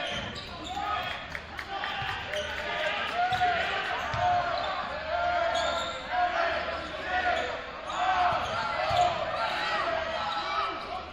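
Sneakers squeak sharply in a large echoing gym.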